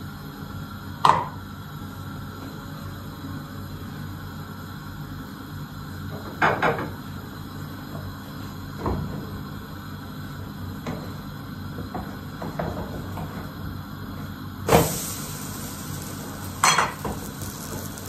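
Utensils clink and knock against plates and a pan.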